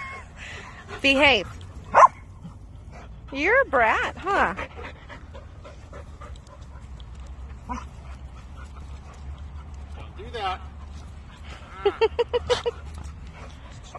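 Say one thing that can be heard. Dogs yelp and whine as they play.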